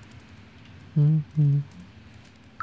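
A cat meows twice.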